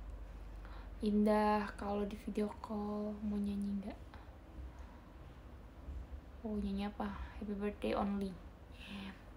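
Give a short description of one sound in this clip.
A young woman speaks softly and close to a microphone, in short phrases.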